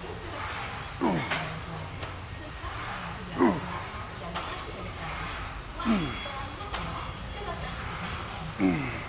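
A man grunts with effort on each pull.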